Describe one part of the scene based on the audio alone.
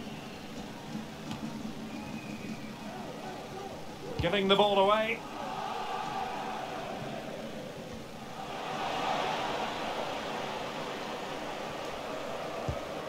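A large stadium crowd murmurs and roars steadily, swelling for a moment.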